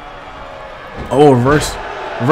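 A body slams heavily onto a wrestling mat with a thud.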